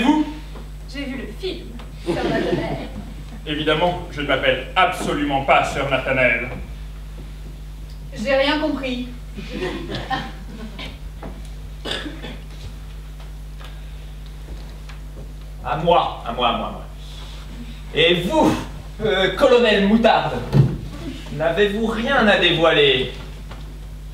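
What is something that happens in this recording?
Young men speak lines with animation from a stage, heard from within a large hall.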